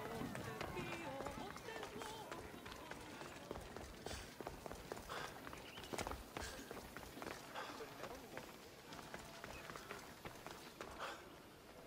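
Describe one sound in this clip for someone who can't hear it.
Footsteps tap on stone as a man walks.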